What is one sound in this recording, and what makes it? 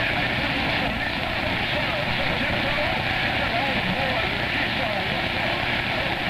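A radio receiver hisses with steady static noise.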